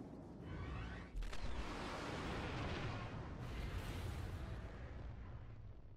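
A spaceship whooshes past.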